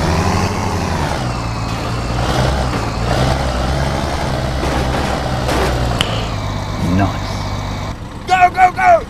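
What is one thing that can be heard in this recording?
A diesel semi truck engine rumbles as the truck drives.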